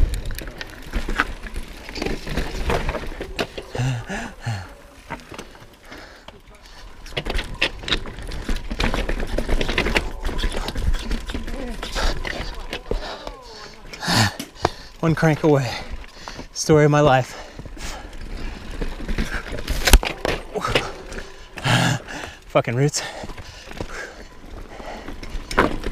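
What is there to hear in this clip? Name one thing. Mountain bike tyres crunch and rattle over loose rocks.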